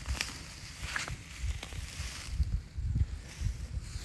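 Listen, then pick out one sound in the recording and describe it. Dry grass rustles as a hand pulls at it.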